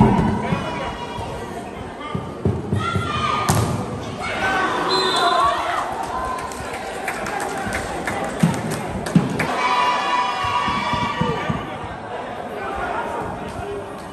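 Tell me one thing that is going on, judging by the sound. A crowd of spectators cheers and shouts under a large open-sided roof.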